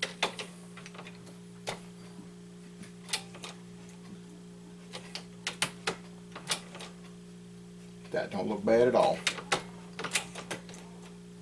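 Metal parts click and clack as a hand works a press.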